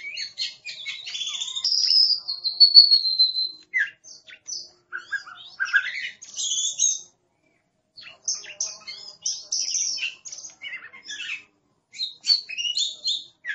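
A songbird sings a varied, whistling song close by, with short pauses.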